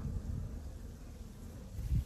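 A lion growls nearby.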